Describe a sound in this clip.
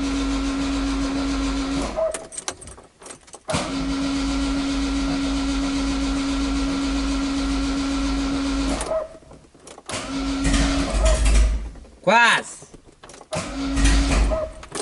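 A car engine idles steadily and stalls several times.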